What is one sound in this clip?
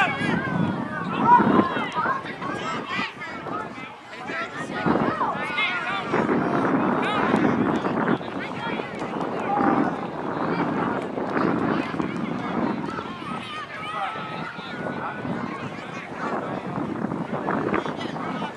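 Young players call out and talk to each other outdoors.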